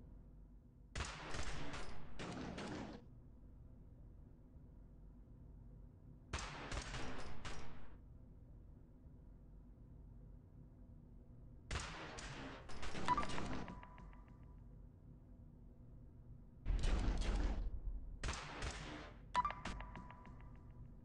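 Gunshots crackle in short rapid bursts.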